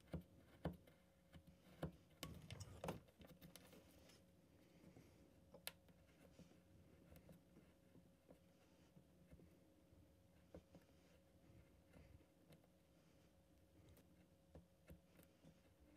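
A craft knife scrapes and cuts into a small piece of wood.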